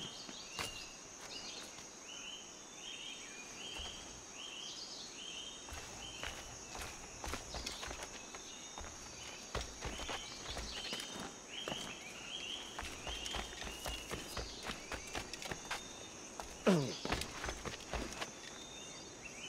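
Footsteps crunch through leaves and undergrowth.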